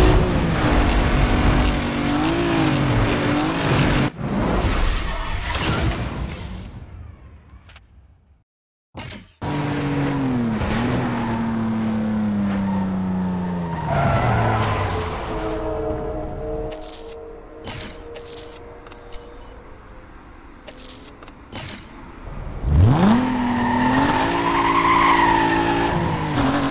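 A car engine roars at high speed, with its pitch rising and falling as the gears shift.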